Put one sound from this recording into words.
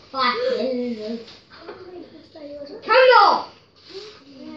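A young boy talks and laughs excitedly nearby.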